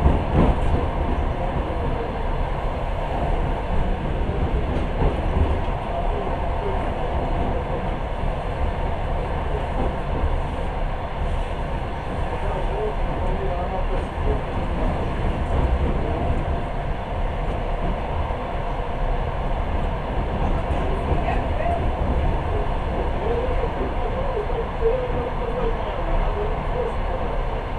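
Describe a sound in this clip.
Wind rushes past an open window.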